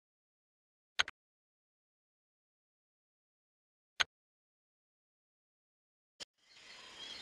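A menu button gives short clicks.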